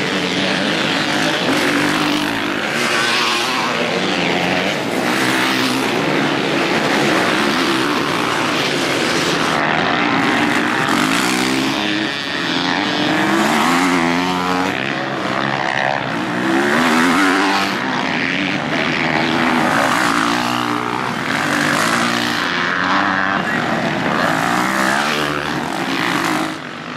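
Dirt bike engines roar and rev loudly, rising and falling in pitch as they pass close by.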